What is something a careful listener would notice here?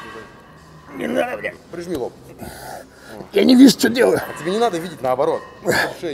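A man grunts and shouts with strain.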